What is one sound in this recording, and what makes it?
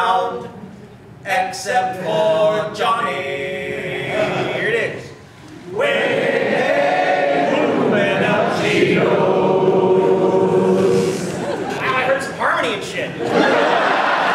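Two men sing loudly together.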